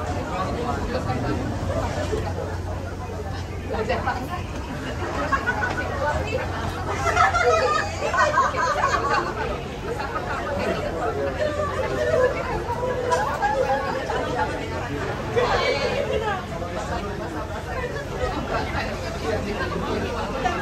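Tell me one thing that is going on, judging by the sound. A crowd of men and women chatters nearby.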